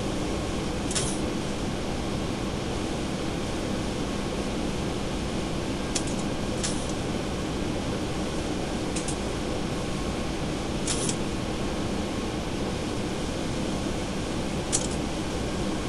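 Soft clicks sound now and then.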